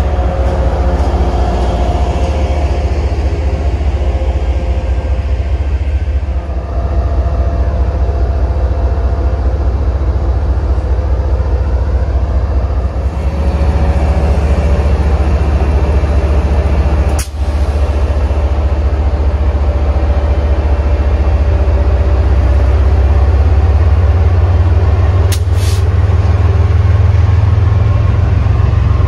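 A diesel locomotive engine rumbles loudly nearby.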